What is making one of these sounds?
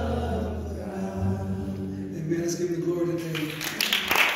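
Women sing through loudspeakers in a large hall.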